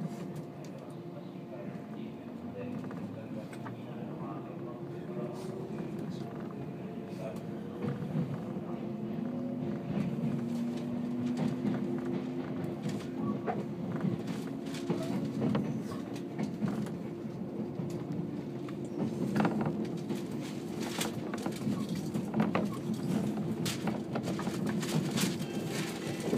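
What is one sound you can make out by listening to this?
A train hums and rumbles steadily as it pulls away and gathers speed.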